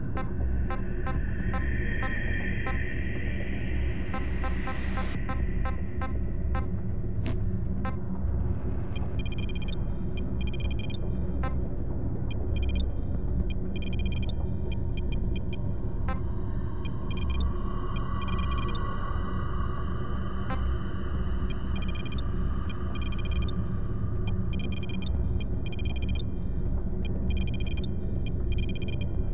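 Soft interface clicks tick rapidly as a menu scrolls and settings change.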